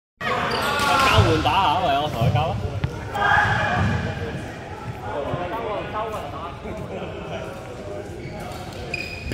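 Men talk casually nearby in an echoing hall.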